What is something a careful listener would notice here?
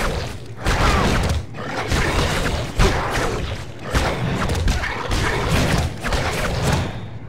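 Heavy blows and thuds land again and again in a fight.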